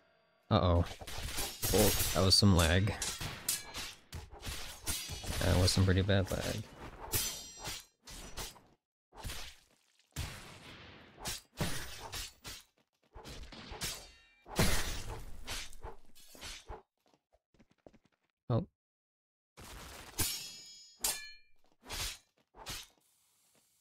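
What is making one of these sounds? Swords clash and slash in quick bursts of game combat.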